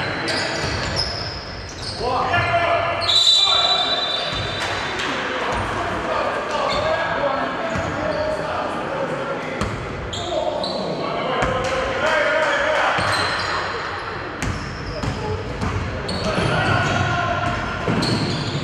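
Young men shout and call out to each other across an echoing gym.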